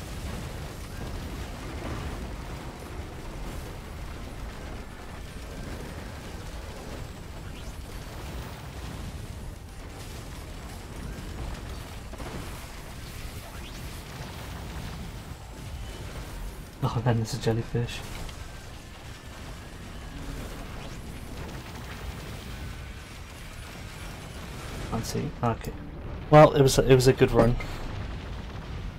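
Explosions and gunfire boom and crackle.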